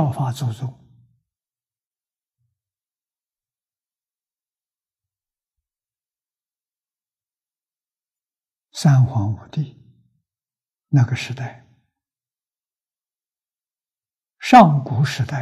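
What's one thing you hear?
An elderly man lectures with animation, close to a microphone, with long pauses.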